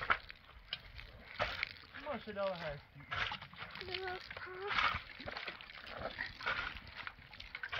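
Water pours from a watering can onto soil.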